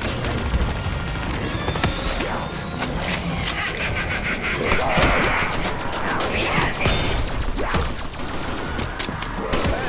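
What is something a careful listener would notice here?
Zombies groan and growl nearby.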